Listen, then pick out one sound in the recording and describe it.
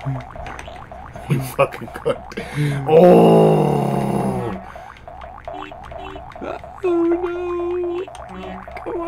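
Electronic game sounds chirp and beep.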